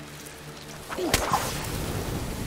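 A fire bursts into flames with a loud whoosh.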